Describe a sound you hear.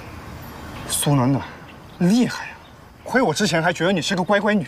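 A young man speaks calmly and quietly nearby.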